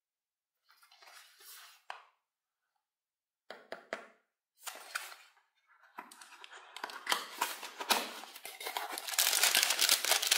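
A cardboard box is handled and opened.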